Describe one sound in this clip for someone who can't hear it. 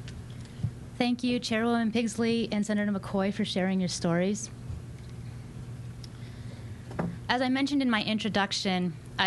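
A young woman speaks steadily into a microphone.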